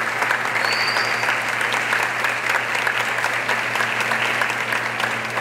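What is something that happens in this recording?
A crowd cheers and calls out.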